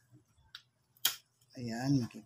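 Pliers snip with a sharp click.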